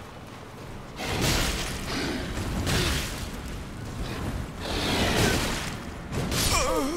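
A burst of fiery magic roars and crackles.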